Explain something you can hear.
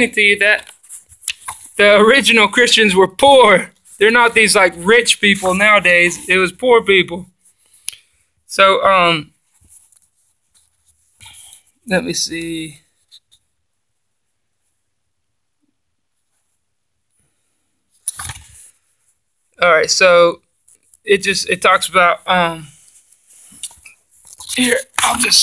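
Paper pages rustle and flip as a book's pages are turned.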